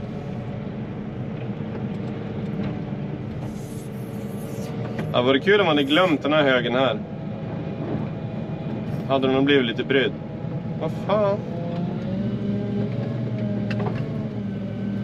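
A heavy loader's diesel engine rumbles steadily.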